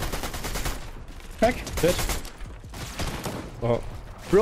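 Video game gunfire and building sounds clatter rapidly.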